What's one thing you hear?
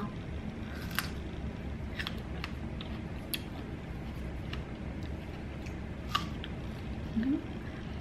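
A woman bites and chews a crisp strawberry.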